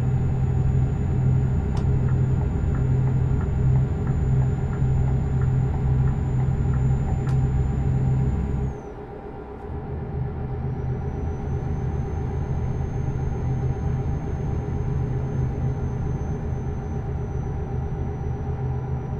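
A truck engine rumbles steadily while driving.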